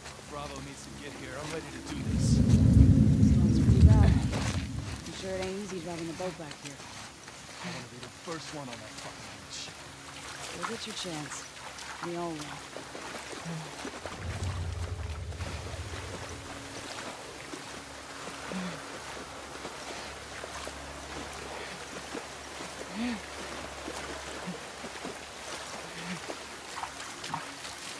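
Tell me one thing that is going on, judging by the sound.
Tall grass rustles as someone crawls through it.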